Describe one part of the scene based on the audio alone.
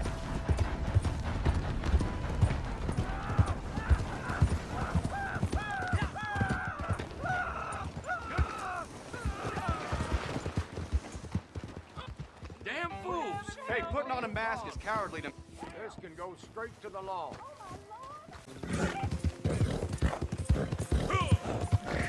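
A horse's hooves thud steadily on a dirt road.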